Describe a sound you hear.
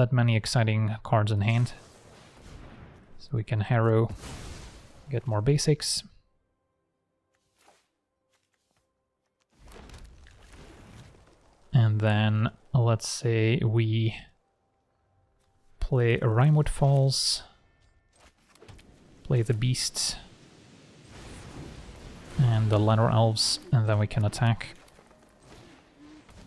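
Digital card game sound effects chime and swish as cards are played.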